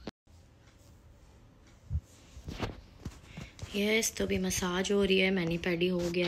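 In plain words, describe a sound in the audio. Hands rub and knead skin softly.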